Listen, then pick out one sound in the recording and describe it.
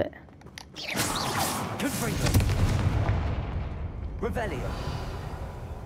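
A magic spell bursts with a crackling roar.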